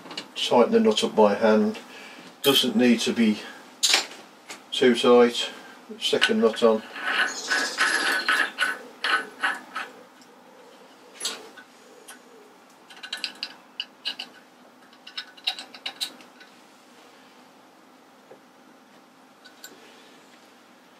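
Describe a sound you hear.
Metal parts click and clink as a pulley is handled.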